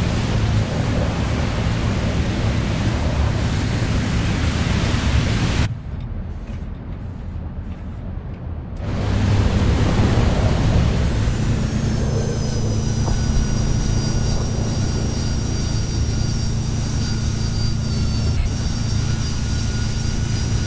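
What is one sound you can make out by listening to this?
A jet engine roars steadily close by.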